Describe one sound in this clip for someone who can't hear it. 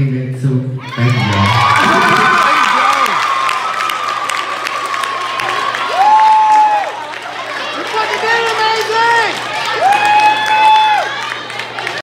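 A crowd cheers and screams with excitement.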